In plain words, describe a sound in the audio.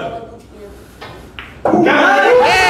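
Pool balls clack together.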